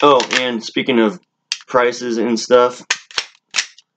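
Metal parts of a handgun click as they are handled.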